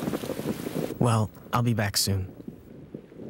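A young man speaks urgently.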